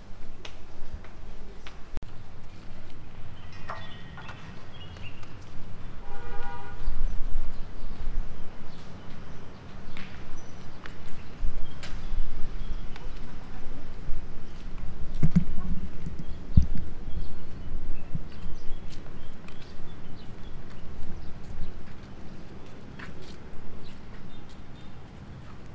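A suitcase's wheels roll and rattle along the ground.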